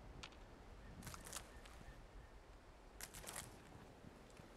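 Leafy plants rustle briefly as they are picked.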